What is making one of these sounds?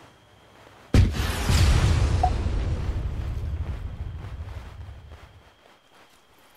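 A loud blast booms, then rumbles and slowly fades away.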